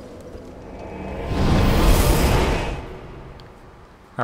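A burst of smoke rushes out with a loud whoosh, then fades.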